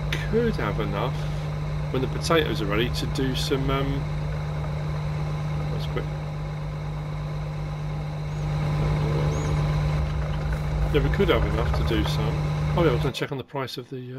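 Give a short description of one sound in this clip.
A combine harvester engine rumbles steadily, then stops abruptly.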